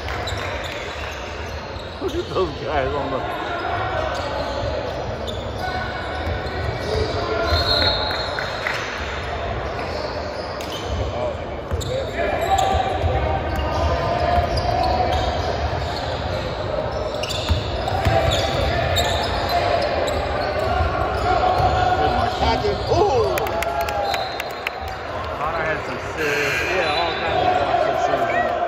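A crowd of young people chatters throughout a large echoing gym.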